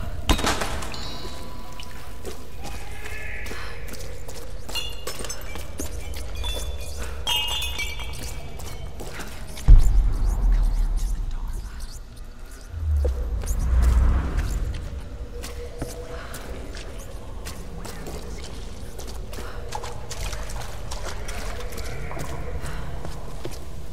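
Footsteps run over rough, rocky ground.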